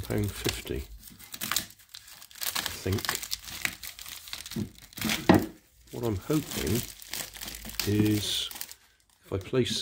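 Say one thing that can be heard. Plastic film crinkles as it is peeled away.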